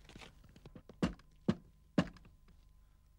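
A man knocks on a wooden door.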